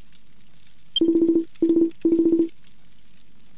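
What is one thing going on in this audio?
Rapid electronic blips chirp in short bursts.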